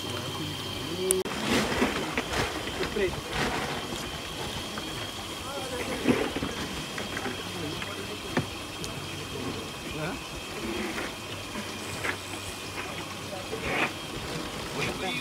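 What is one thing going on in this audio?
Water laps gently against a boat.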